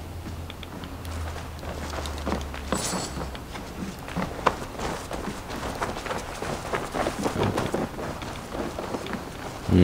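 Footsteps thud quickly on wooden floorboards and packed earth.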